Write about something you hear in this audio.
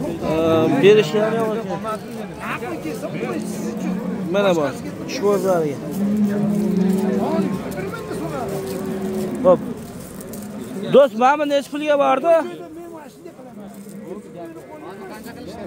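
Men talk nearby amid a murmuring crowd outdoors.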